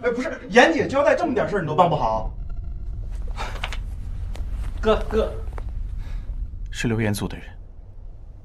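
A young man speaks quietly and intimately nearby.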